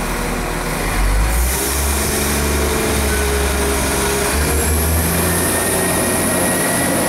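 A diesel multiple unit train's engines rev up as it pulls away.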